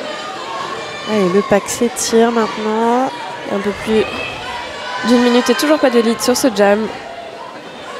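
A crowd chants loudly in an echoing hall.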